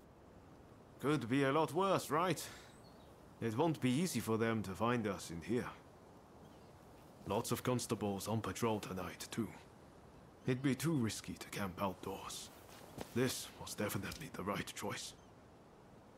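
A man speaks calmly and in a low voice, close by.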